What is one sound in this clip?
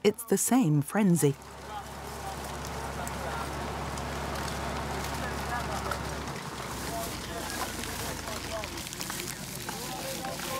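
A crowd of men and women chatter and call out nearby.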